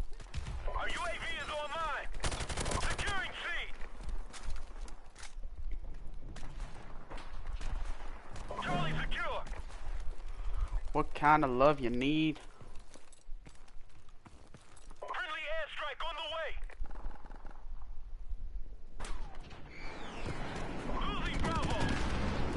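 Rapid gunfire cracks in short bursts.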